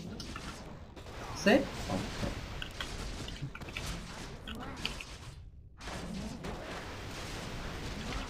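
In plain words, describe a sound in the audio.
A spell crackles with electric zaps.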